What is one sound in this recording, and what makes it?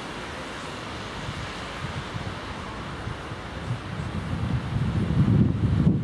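A car drives past on a wet, slushy road, growing louder as it nears.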